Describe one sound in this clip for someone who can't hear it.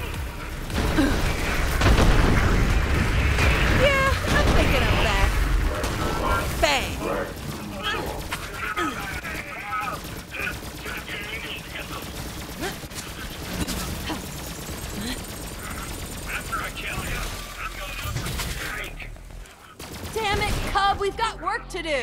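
Guns fire rapidly in bursts.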